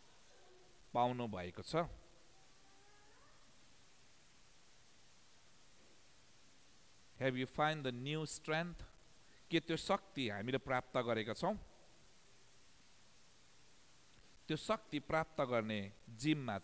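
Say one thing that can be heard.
A man speaks calmly into a microphone, with long pauses.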